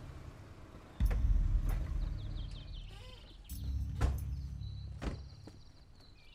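An off-road vehicle's engine rumbles as it drives up and stops.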